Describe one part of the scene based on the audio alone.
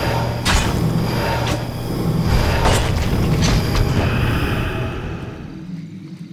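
Weapons clash and spells burst in a loud game battle.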